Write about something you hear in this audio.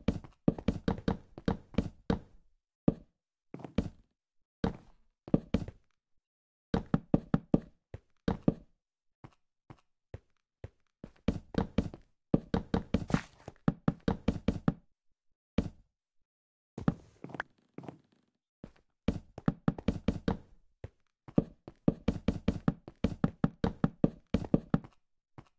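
Wooden blocks knock softly as they are placed, in quick bursts.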